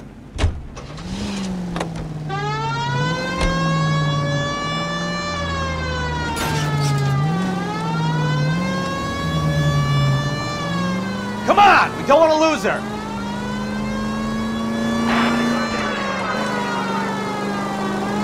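A car engine starts and revs up and down as the car drives along.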